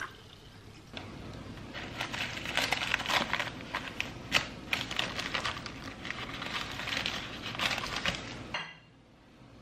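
A paper wrapper crinkles and rustles.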